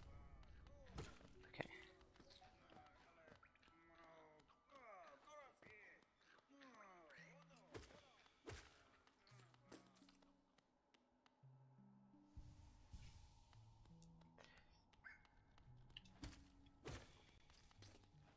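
A creature bursts with a loud splatter.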